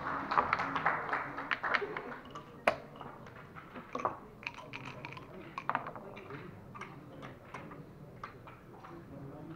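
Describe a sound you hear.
Game pieces click and clack on a wooden board.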